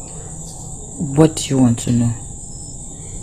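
A younger woman speaks softly close by.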